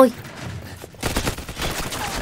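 A gunshot fires sharply.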